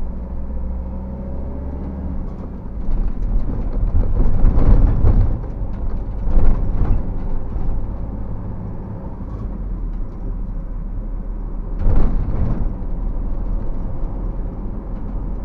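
Tyres rumble and thump over a rough road.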